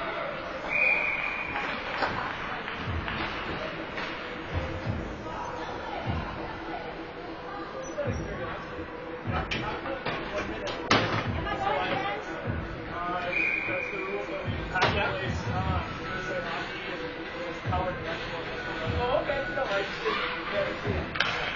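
Skates scrape and glide across ice in a large echoing rink.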